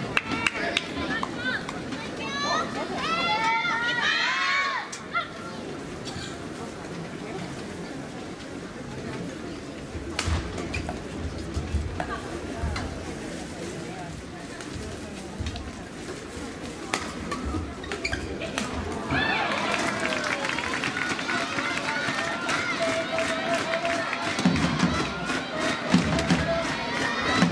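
A crowd of spectators cheers and chatters loudly.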